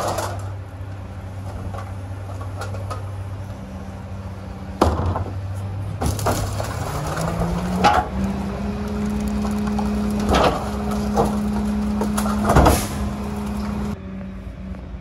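A garbage truck engine rumbles steadily nearby.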